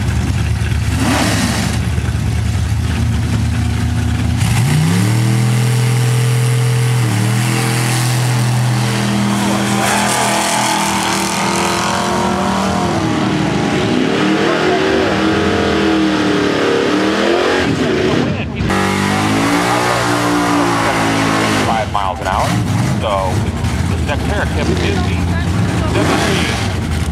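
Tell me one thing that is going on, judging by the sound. Loud engines idle with a deep, rough rumble.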